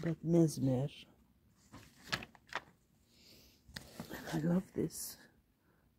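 A magazine page rustles as it is turned.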